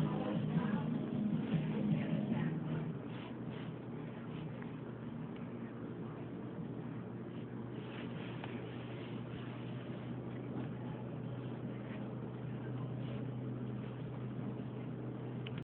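A kitten purrs steadily up close.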